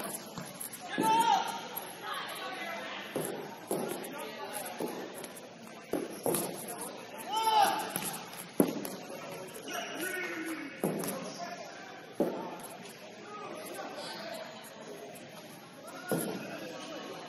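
A ball is kicked with sharp thuds on a hard floor.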